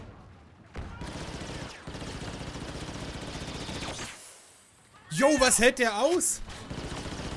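Laser blasters fire in rapid, crackling bursts.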